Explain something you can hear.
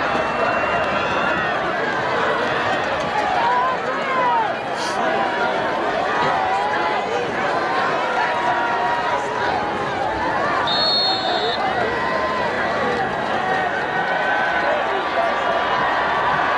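A large crowd cheers and chatters loudly outdoors.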